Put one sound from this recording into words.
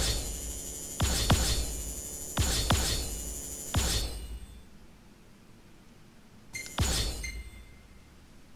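Bright chiming tones ring out in short bursts, each fading away.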